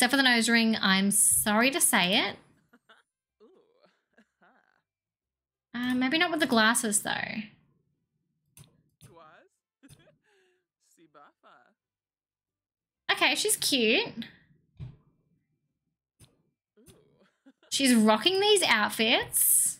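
A young woman talks with animation close to a microphone, in bursts with pauses.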